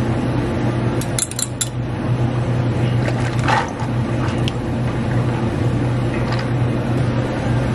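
Ice cubes clink and crackle in a cup.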